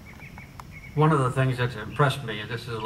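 An elderly man speaks calmly into a microphone, heard over loudspeakers outdoors.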